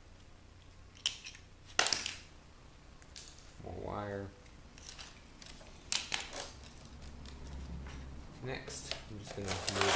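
A screwdriver clicks and scrapes against a plastic case.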